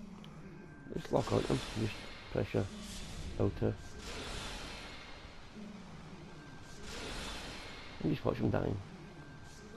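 Magic blasts whoosh and burst in short, loud bursts.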